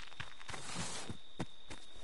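Footsteps run quickly over the ground.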